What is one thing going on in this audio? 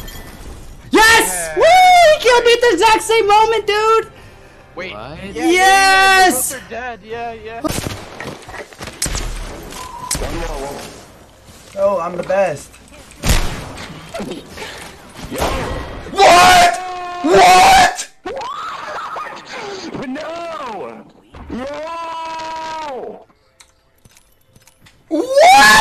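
A young man shouts excitedly into a close microphone.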